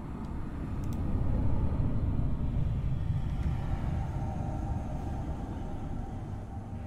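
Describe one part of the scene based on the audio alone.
A deep rushing whoosh rumbles steadily and slowly fades.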